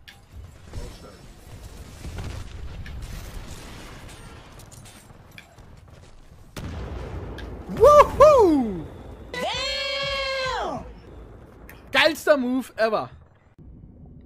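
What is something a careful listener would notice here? Gunfire and explosions rattle and boom in a game.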